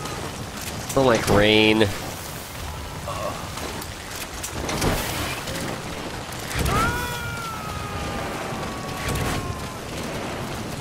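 A young man talks into a nearby microphone.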